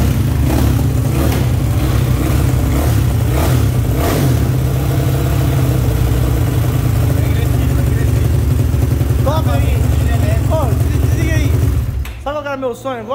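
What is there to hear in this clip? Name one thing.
A motorcycle engine idles loudly and revs in short bursts.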